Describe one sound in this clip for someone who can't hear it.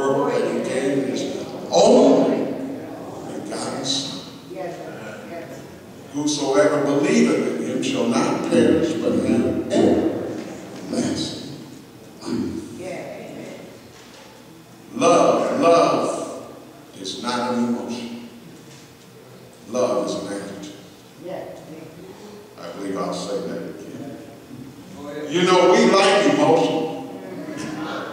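An elderly man preaches with animation through a microphone and loudspeakers in an echoing hall.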